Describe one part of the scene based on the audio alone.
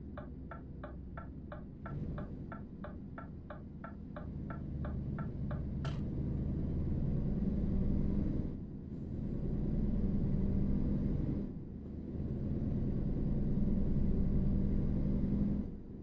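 A truck engine drones steadily, rising in pitch and dipping briefly at each gear change.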